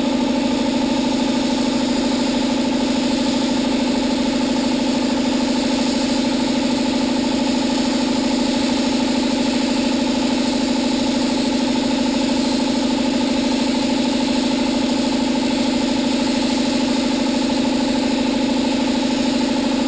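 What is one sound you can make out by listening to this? A welding torch buzzes and crackles steadily up close.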